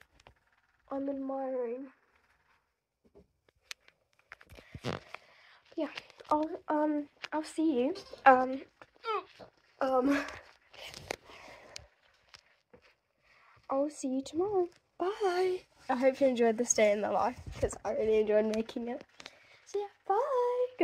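A young girl talks close to a phone microphone, with animation.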